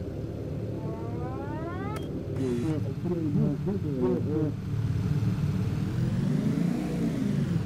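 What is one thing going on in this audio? The piston engines of a four-engine propeller bomber drone.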